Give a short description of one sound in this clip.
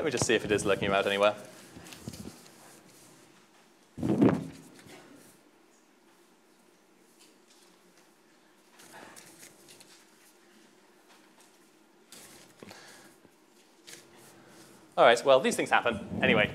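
Papers rustle on a desk.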